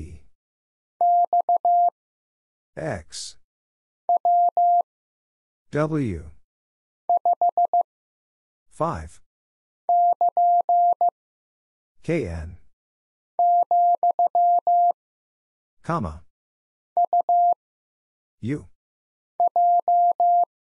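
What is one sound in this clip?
A telegraph key taps out short and long beeps of Morse code in quick bursts.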